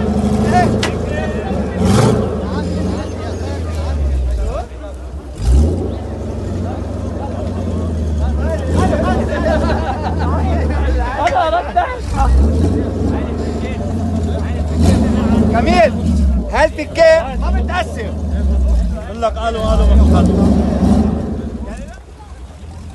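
An off-road buggy's engine rumbles and revs.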